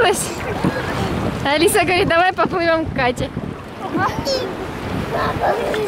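A young girl talks excitedly.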